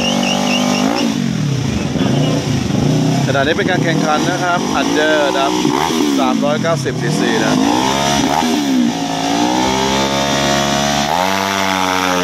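A motorcycle engine revs hard over and over close by.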